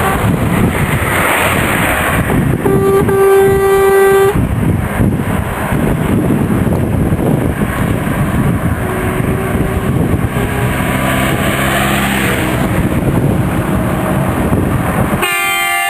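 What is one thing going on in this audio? A diesel box truck drives along a road toward the listener.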